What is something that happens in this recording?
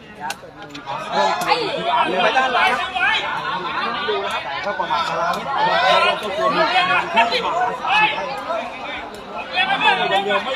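A large crowd cheers and shouts excitedly outdoors.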